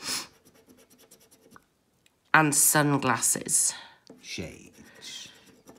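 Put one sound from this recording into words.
A coin scratches across a scratch card.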